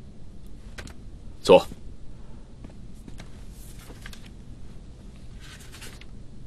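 Paper rustles as pages are handed over and leafed through.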